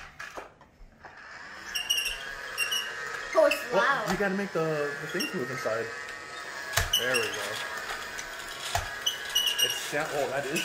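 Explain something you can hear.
A toy vacuum cleaner whirs steadily.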